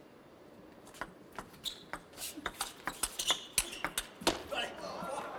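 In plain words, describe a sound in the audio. A ball clicks back and forth on paddles and a table in a quick rally.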